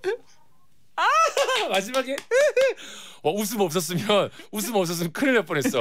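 A second man laughs loudly.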